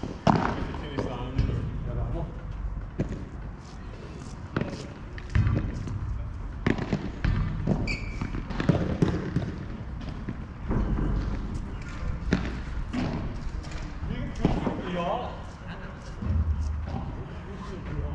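Men talk at a distance.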